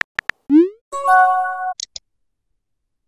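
A bright chime sounds as a message arrives.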